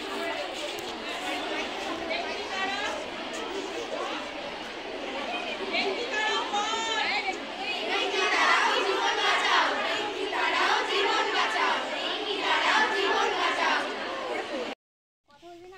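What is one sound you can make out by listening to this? A group of young girls sings together through a microphone and loudspeaker outdoors.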